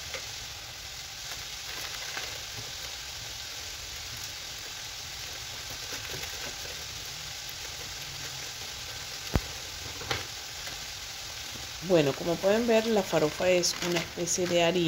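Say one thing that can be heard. Vegetables sizzle softly in a pot.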